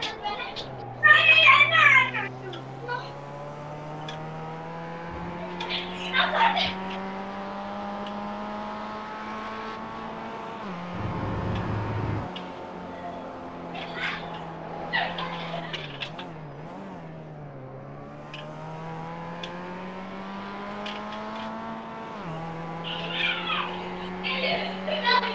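Tyres squeal in bursts as the car takes corners.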